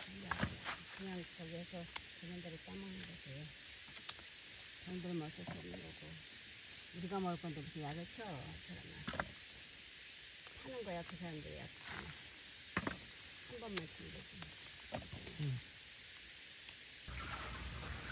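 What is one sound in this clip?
Pepper stems snap sharply as they are picked by hand.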